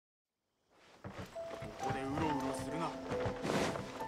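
Game music plays with a gentle tune.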